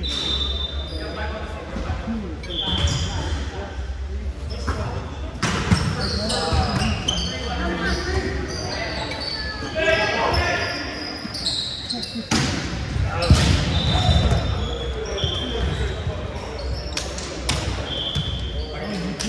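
Men call out and chatter across a large echoing gym.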